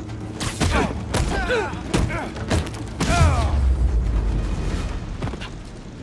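A fire crackles and roars.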